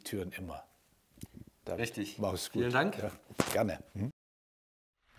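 An older man speaks warmly into a microphone.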